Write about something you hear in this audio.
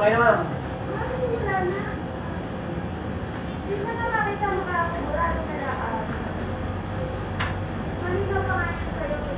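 A woman talks at a short distance.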